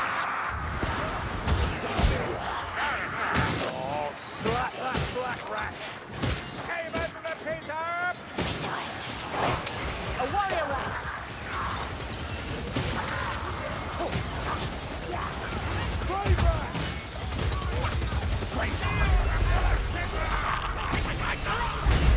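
Melee weapons strike and clang against enemies.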